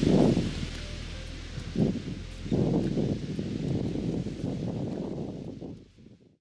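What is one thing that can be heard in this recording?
Wind blows outdoors, buffeting loudly.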